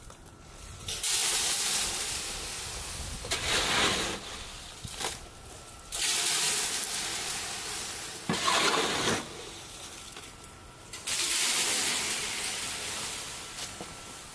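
Loose gravel hisses as it slides down a metal chute.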